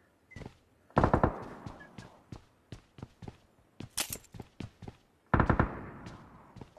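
Rapid gunfire bursts out in short volleys.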